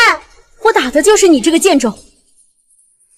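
A young woman speaks angrily up close.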